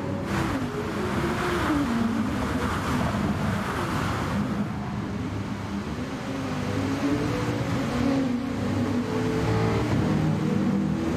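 Racing car engines roar and shift pitch as they speed past.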